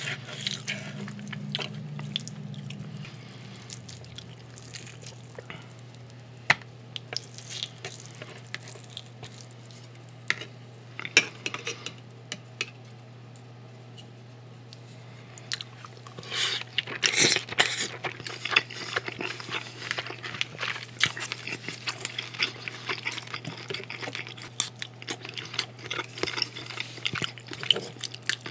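Cutlery clicks and scrapes against a plate.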